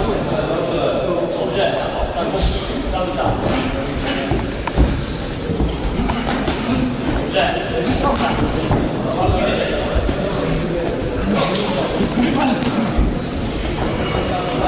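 Boxing gloves thud against each other and the body.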